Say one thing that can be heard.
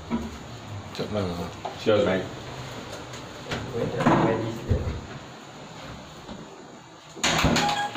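A door opens and shuts.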